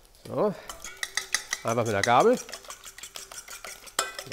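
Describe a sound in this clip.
A fork whisks eggs briskly in a metal bowl.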